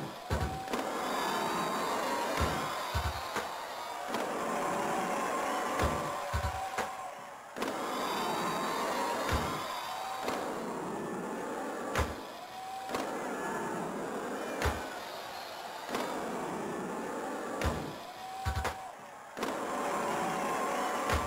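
A skateboard clacks on landing in a video game.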